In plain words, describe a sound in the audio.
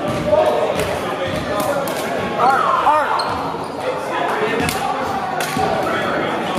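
Several young men talk and call out in a large echoing gym.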